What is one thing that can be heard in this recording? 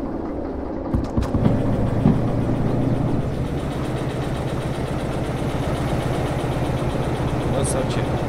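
A diesel locomotive engine revs up and chugs as the locomotive rolls along rails.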